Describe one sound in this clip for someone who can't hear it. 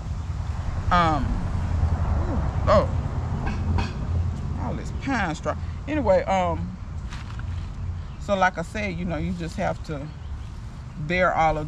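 A young woman talks calmly up close.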